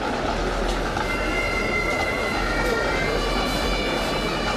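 A marching band plays with drums.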